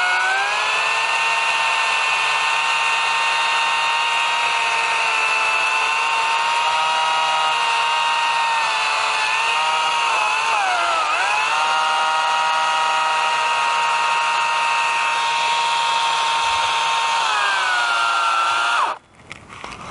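A gas-powered brush cutter whines steadily close by, dipping briefly as it bites into brush.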